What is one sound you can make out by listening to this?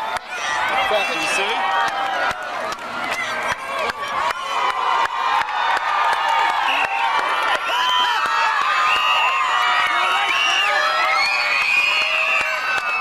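A large crowd outdoors cheers and screams loudly throughout.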